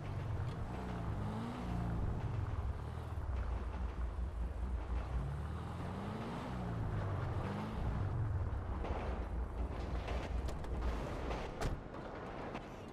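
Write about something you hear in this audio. A car engine rumbles and revs up and down as the car drives along.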